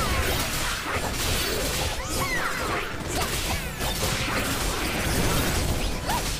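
Whooshing spell effects sweep up and down in pitch.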